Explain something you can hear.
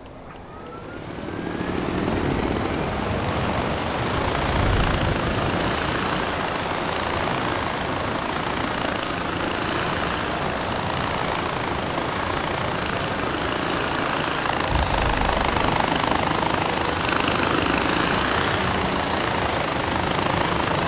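A zipline pulley whirs and rushes along a cable.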